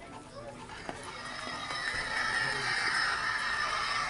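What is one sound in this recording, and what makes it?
A young girl talks with excitement close by.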